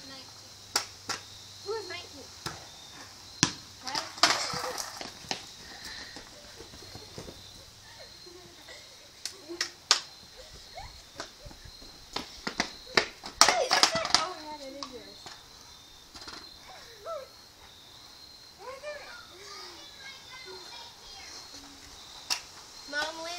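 A basketball bounces on pavement with sharp thuds.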